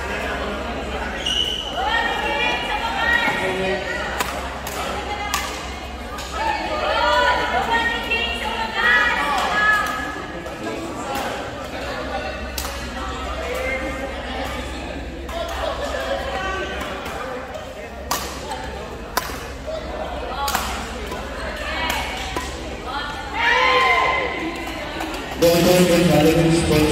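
Players' shoes squeak on a hard court floor.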